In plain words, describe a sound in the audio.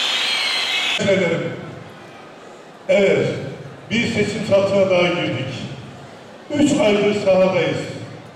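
An elderly man speaks forcefully into a microphone over loudspeakers in an echoing hall.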